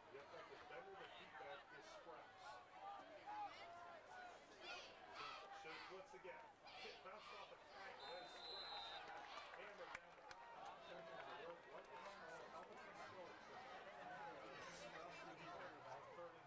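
A crowd of young men shouts and cheers close by, outdoors.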